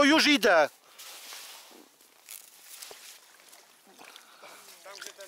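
Water splashes and drips as a net is lifted out of a pond.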